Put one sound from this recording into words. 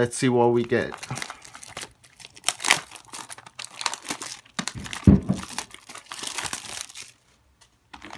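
Plastic wrap crinkles and rustles as hands tear it off a box.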